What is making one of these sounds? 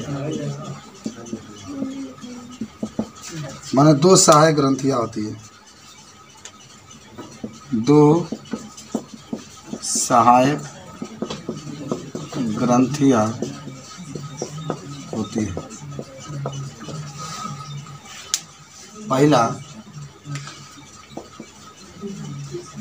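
A middle-aged man speaks calmly and explains, close by.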